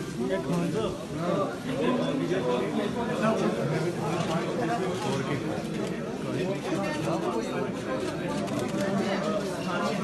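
Several men talk over one another in a crowd close by.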